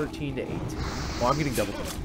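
A fiery spell bursts with a whoosh.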